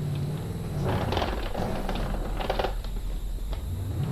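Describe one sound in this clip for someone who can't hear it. A car crashes into bushes with a thud and rustling.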